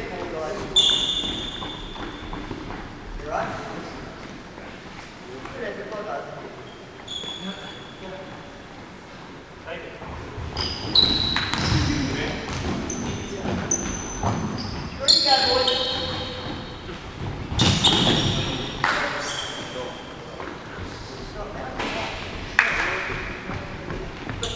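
Shoes squeak sharply on a hard indoor court.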